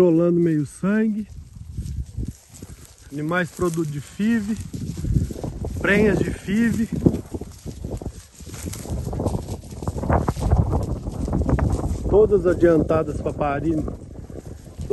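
Cattle shuffle and trample through dry grass.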